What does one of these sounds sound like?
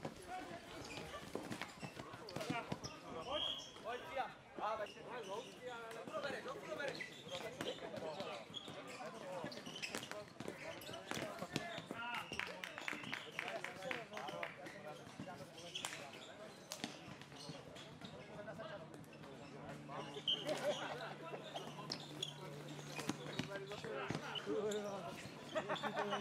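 Floorball sticks click against a ball and against each other.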